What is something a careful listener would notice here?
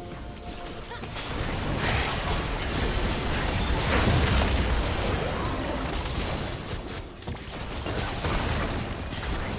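Magic spells blast and crackle in a hectic fight.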